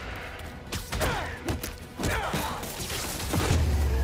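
Heavy punches thud and crack in a fight.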